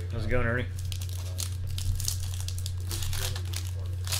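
A knife slices through a foil wrapper.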